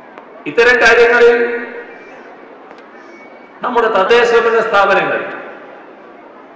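A man speaks forcefully into a microphone over loudspeakers.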